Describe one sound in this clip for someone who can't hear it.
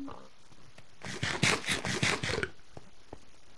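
Crunchy eating sounds come in quick bites.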